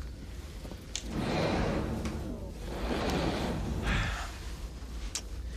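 A group of people laughs.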